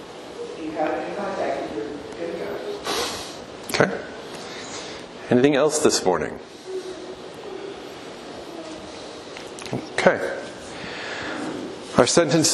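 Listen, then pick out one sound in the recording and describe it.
A man speaks calmly and clearly in a large echoing room.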